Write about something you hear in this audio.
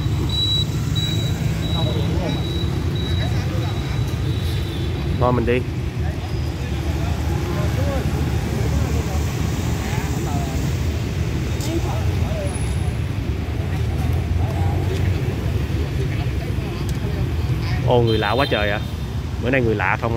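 Street traffic hums steadily in the background.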